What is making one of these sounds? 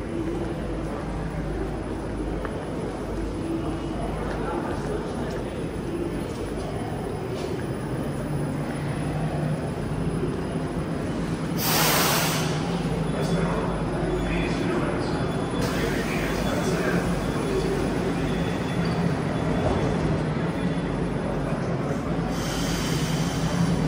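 A busy underground hall echoes with the murmur of people.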